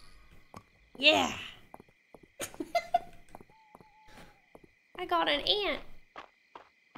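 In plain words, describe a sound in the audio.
A young woman talks and laughs with animation close to a microphone.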